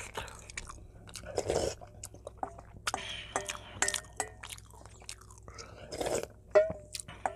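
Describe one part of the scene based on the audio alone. A young man slurps soup loudly up close.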